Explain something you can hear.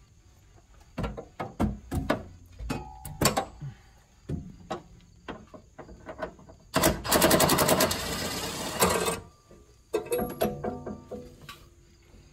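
Metal tools clank and knock against car parts close by.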